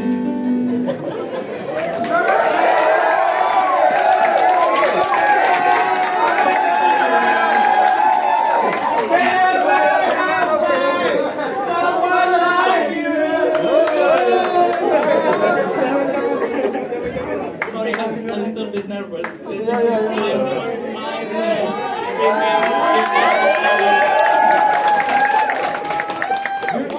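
A man sings into a microphone, heard through loudspeakers in a room.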